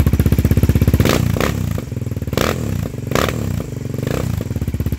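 A quad bike engine revs in short, sharp bursts.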